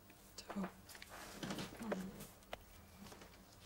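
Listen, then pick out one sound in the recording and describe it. A young man answers quietly.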